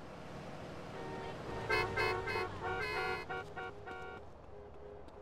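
A train horn blares nearby.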